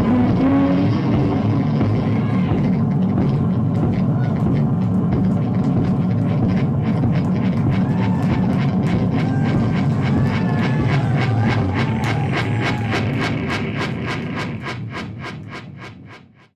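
A band plays loud electronic music on synthesizers with a droning low end.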